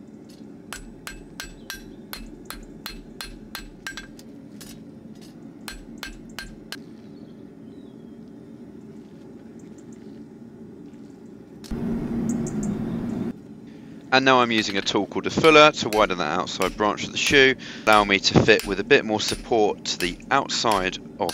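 A hammer strikes metal on an anvil in quick, ringing blows.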